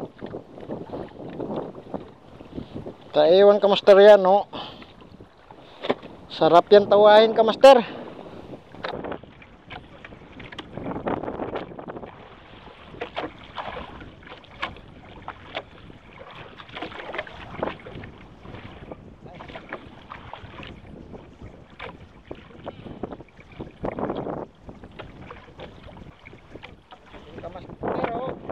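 Waves slosh against a small boat.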